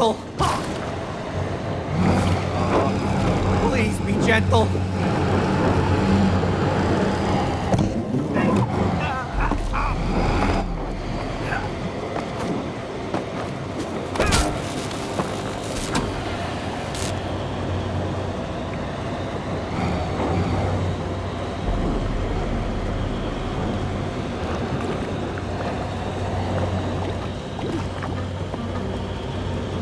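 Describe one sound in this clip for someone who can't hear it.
Steam hisses steadily from a vent.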